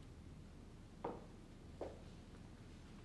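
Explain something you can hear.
Footsteps sound softly on a floor.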